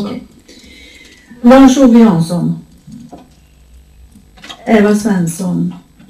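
A woman speaks calmly into a microphone, reading out in short phrases.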